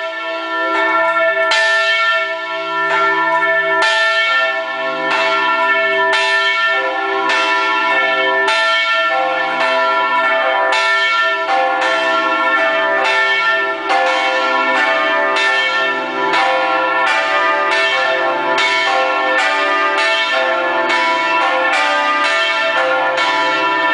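A large bell swings and rings loudly close by, struck again and again with a long ringing hum between strokes.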